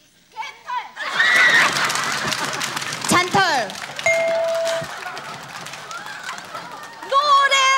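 An audience laughs and cheers.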